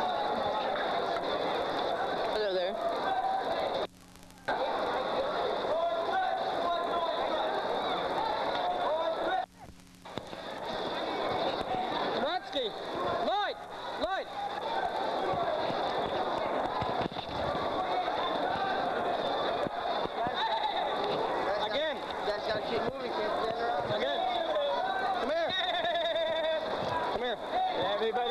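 A crowd murmurs and chatters in a large open space.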